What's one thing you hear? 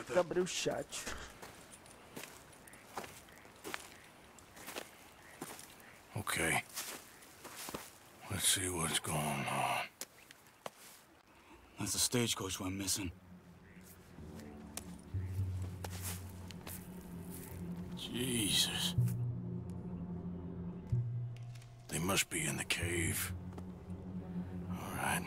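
A young man talks casually into a microphone, close by.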